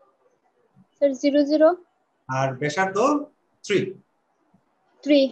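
A man speaks calmly into a microphone, explaining in short phrases.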